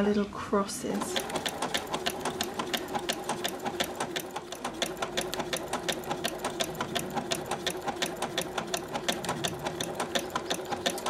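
A sewing machine stitches with a fast, steady rhythmic clatter.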